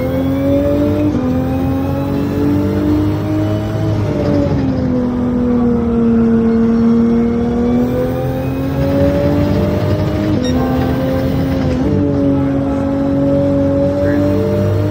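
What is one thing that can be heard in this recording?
A racing car engine drones loudly, its pitch rising and dipping as it shifts gears.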